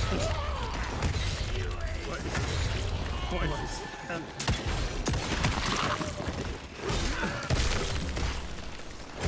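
Creatures snarl and screech.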